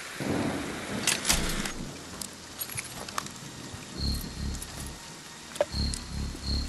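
Small metal parts click and rattle.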